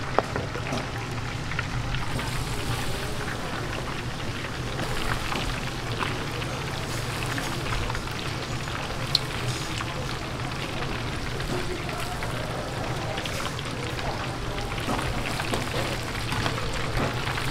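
Hot oil bubbles and sizzles loudly.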